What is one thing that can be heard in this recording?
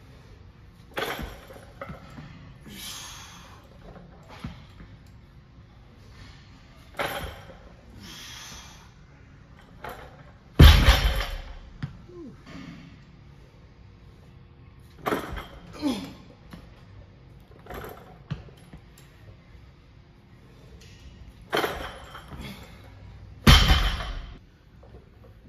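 Weight plates clank and rattle on a barbell.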